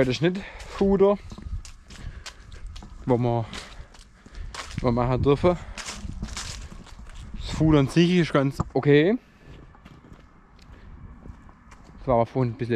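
A young man talks close to a microphone, calmly and in bursts.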